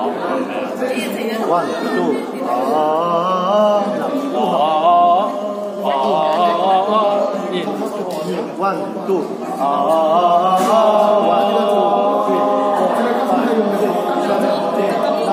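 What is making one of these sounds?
A group of young men sing together in harmony, close by.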